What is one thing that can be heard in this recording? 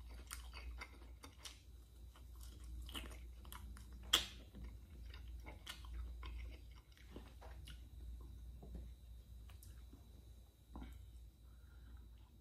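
A man chews food with soft smacking sounds close by.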